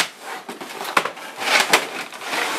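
Packaging thumps down onto a table.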